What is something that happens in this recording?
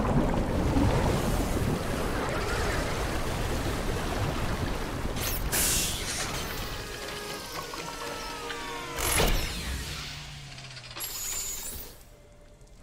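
Heavy machinery whirs and hisses with a rising mechanical whine.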